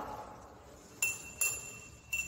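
Glass clinks lightly against glass.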